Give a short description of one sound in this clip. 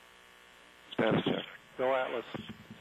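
A man speaks briefly over a radio loop.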